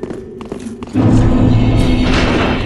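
A loud, ringing tone swells suddenly.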